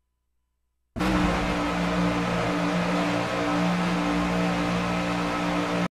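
Race car engines roar loudly and steadily as cars speed along a track.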